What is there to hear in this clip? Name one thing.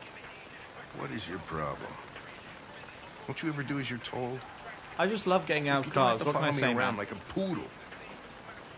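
A middle-aged man speaks gruffly and close by.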